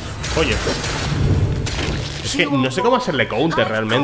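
Sword slashes and combat effects clash loudly.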